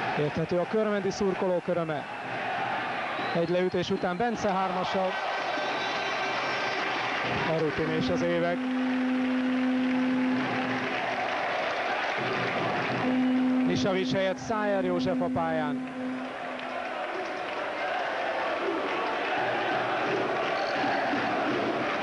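A large crowd cheers and chatters in an echoing hall.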